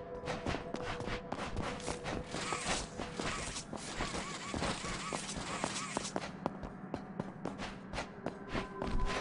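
Footsteps patter quickly across a hard floor.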